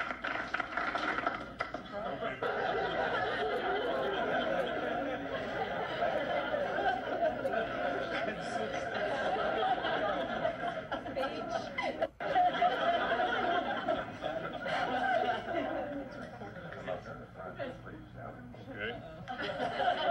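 A crowd of men and women chatters in a room.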